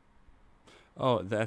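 A young man speaks loudly with animation into a close microphone.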